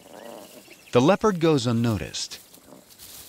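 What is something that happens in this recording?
Lion cubs growl and snarl as they play.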